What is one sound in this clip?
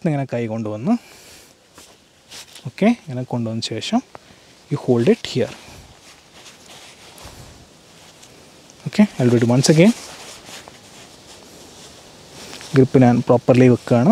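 A man explains calmly, close to a microphone.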